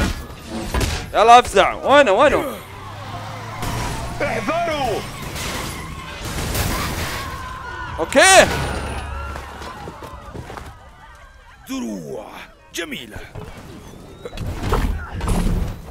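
Heavy blows and explosions thud and boom in a video game.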